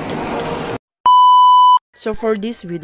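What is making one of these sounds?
A steady high beep sounds.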